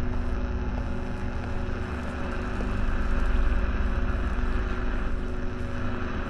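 A low electrical hum drones steadily.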